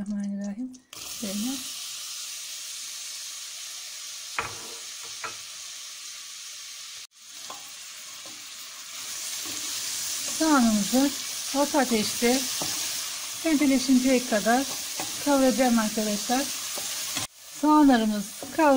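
Chopped onions sizzle and crackle in hot oil.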